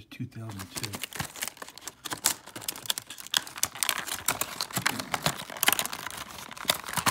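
Plastic packaging crinkles and crackles close by.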